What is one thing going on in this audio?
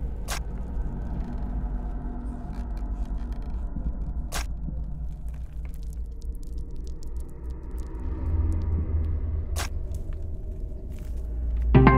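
Liquid pours and splashes into a glass beaker.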